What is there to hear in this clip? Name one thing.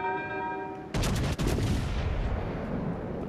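Heavy naval guns fire a loud booming salvo that rumbles away.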